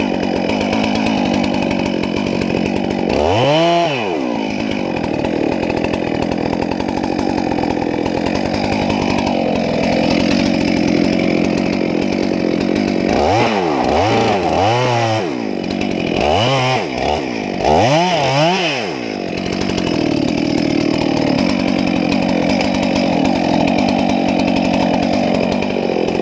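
A chainsaw engine runs loudly close by, its pitch rising and falling as the throttle revs.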